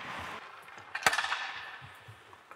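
Skates scrape across ice in a large echoing arena.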